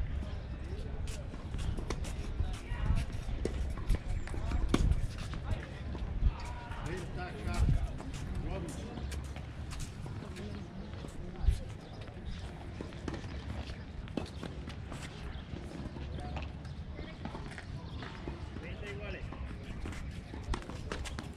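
Tennis balls are struck by rackets with sharp pops.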